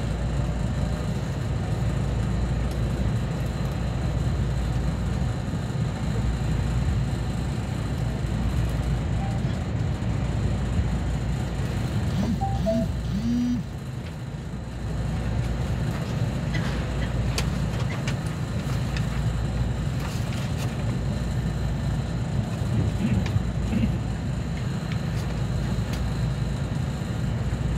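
A train rumbles steadily along its tracks.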